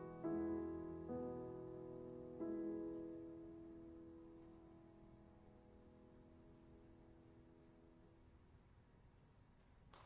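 Final chords on a grand piano ring out and fade in a large hall.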